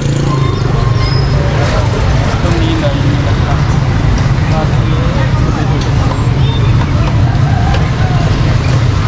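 A busy street hums with steady traffic and murmuring people.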